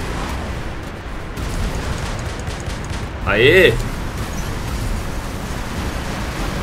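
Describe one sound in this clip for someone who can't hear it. A giant robot stomps with heavy, deep thuds.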